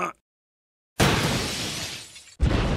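A hammer clunks against stone.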